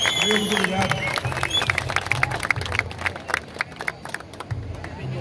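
A crowd claps along outdoors.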